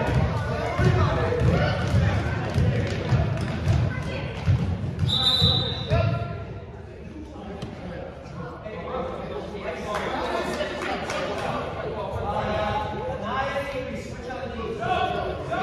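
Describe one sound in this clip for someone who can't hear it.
Young children shout and call out across the echoing hall.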